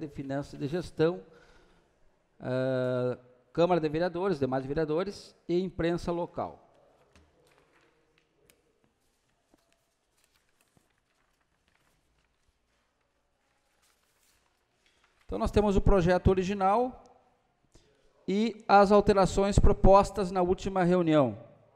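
A middle-aged man reads out calmly into a microphone.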